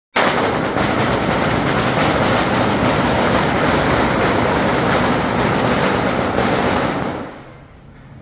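Firecrackers crackle loudly and rapidly nearby, then stop.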